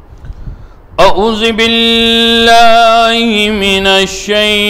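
A man chants in a long, melodic voice through a microphone.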